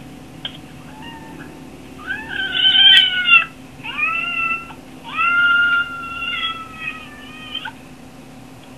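A kitten mews repeatedly, close by.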